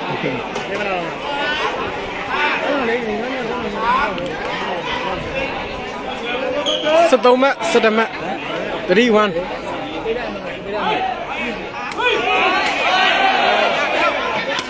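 A crowd of men and women chatter and shout outdoors.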